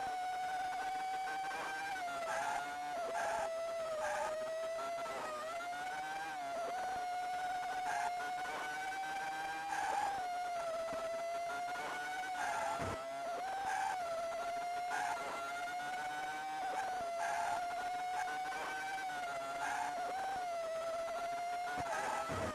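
A race car's engine whines steadily, its pitch rising and falling.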